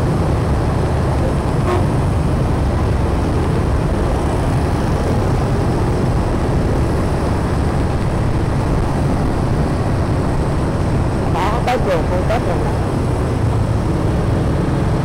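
Wind rumbles loudly against a moving motorbike.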